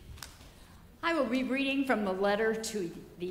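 A woman reads out calmly through a microphone in a large echoing room.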